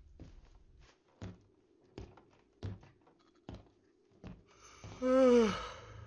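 Footsteps thud across a floor.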